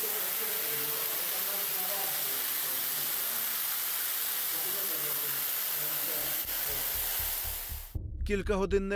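Water pours and splashes heavily down a stairwell.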